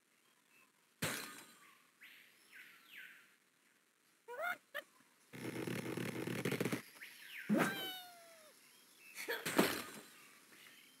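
Ice and wood blocks crash and break.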